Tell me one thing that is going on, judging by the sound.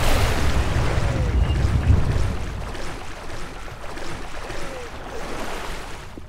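Water splashes and sloshes as a swimmer strokes through it.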